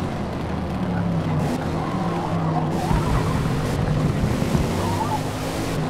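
Tyres squeal through a tight corner.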